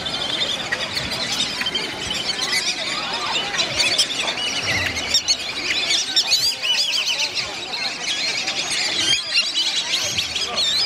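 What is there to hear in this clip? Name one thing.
Many birds whistle and chirp nearby, without a break.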